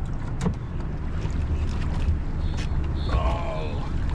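A wire trap splashes out of the water.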